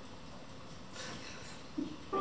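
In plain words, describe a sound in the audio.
A man laughs softly close by.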